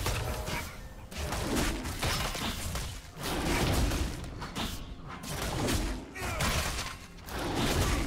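Game characters fight with rapid magical blasts and hits.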